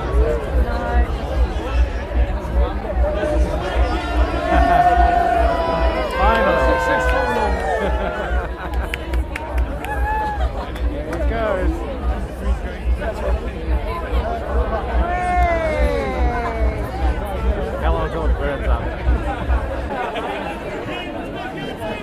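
A large crowd of men and women chatters and cheers outdoors.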